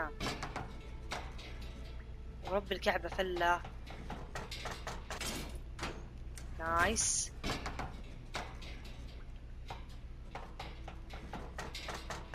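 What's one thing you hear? A metal bar scrapes and clanks against a payphone's coin box.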